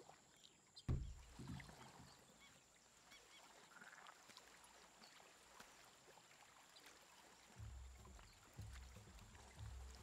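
A canoe paddle splashes through swamp water.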